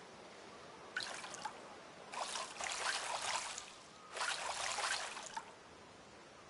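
Water splashes and ripples as a fish tugs the line.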